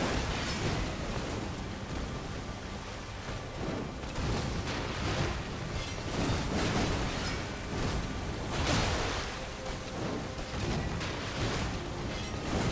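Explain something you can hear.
Swords clash and slash in a fierce fight.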